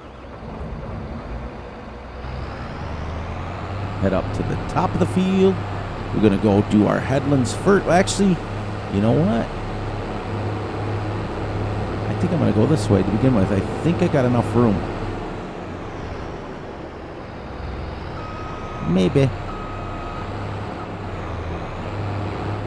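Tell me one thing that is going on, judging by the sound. A combine harvester engine hums steadily at a low pitch.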